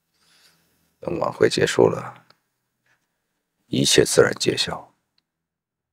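A man speaks calmly at close range.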